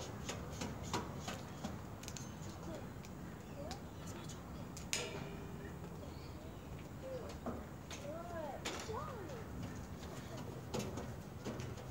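Footsteps clank on metal stairs.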